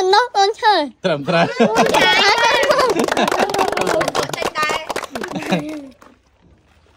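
Several children talk and laugh together close by.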